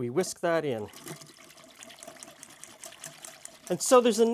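A whisk stirs liquid in a glass beaker.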